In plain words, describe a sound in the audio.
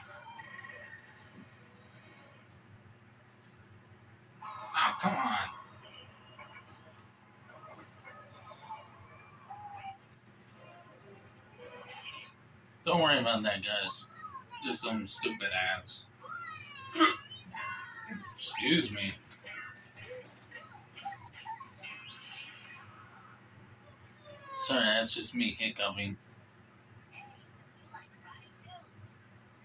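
Video game music and sound effects play from a television.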